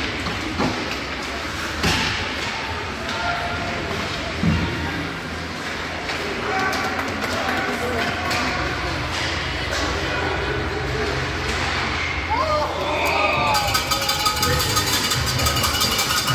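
Skates scrape across ice in a large echoing rink.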